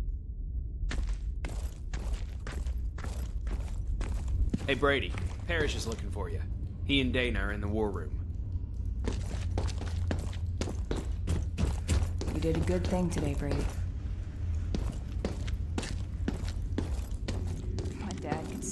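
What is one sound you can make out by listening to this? Footsteps thud and scuff on a hard floor.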